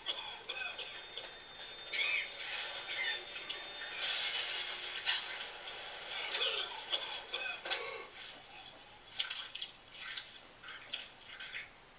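Game music and effects play from a television speaker.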